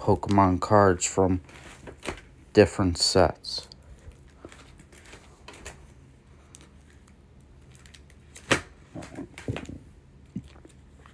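Plastic binder pages rustle and flap as they are turned.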